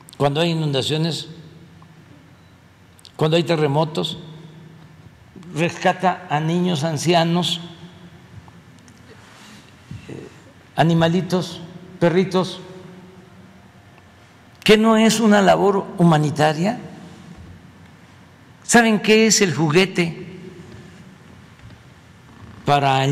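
An elderly man speaks slowly and calmly into a microphone, in short phrases with pauses, in a large echoing room.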